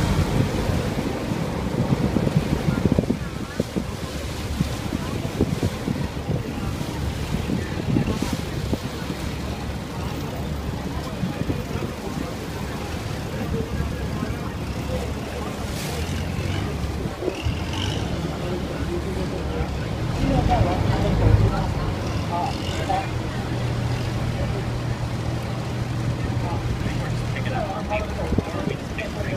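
Choppy river water splashes and laps.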